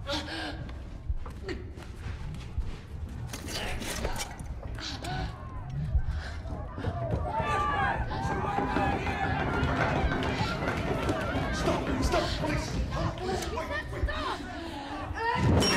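A young woman speaks in a frightened, breathless voice.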